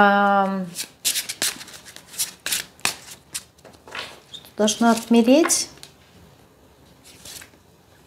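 Playing cards riffle and flick as a woman shuffles them.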